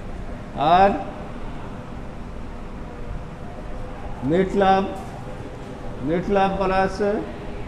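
A man speaks through a microphone in short, calm bursts.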